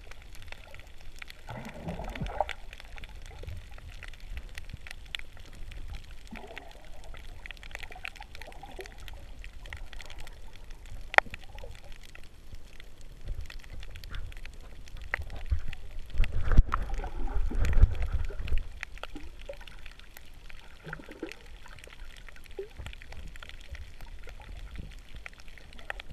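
Water sloshes and gurgles around a microphone held underwater.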